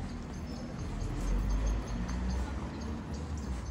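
A car drives past on the street.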